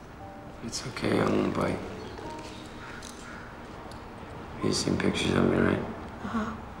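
A man speaks calmly and quietly nearby.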